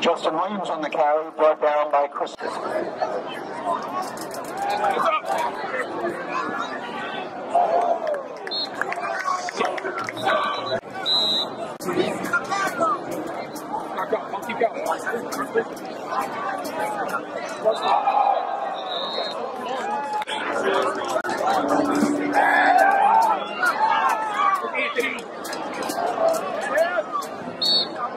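A crowd of spectators chatters and calls out outdoors.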